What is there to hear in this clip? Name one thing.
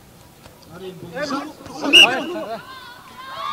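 Young men shout and cheer.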